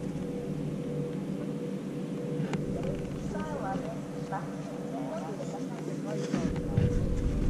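Skis scrape slowly over packed snow.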